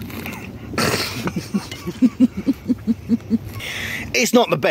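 A man gulps a drink.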